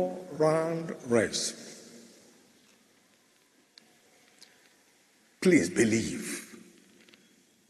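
A man preaches loudly with animation through a microphone in a large echoing hall.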